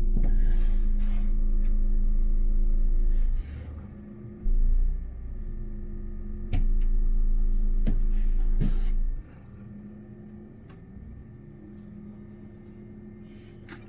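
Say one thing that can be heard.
A city bus engine idles.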